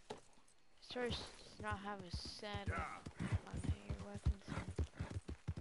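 Horse hooves gallop over grass.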